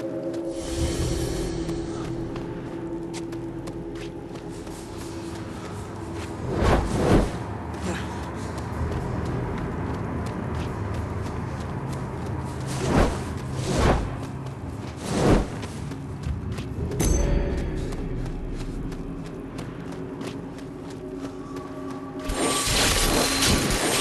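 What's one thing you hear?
Footsteps crunch on rough ground.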